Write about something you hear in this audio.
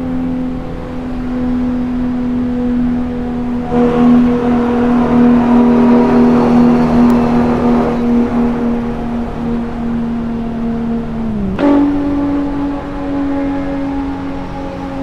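A sports car engine hums steadily at high speed.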